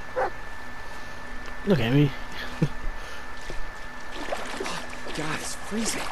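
Water splashes underfoot as someone wades through a shallow stream.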